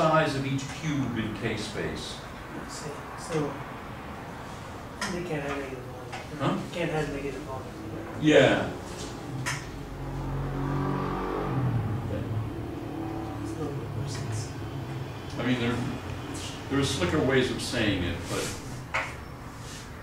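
An elderly man lectures calmly, close by.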